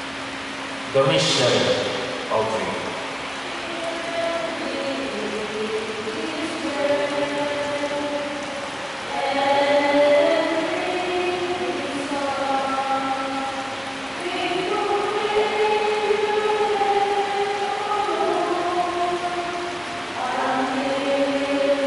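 A middle-aged man chants through a microphone in an echoing hall.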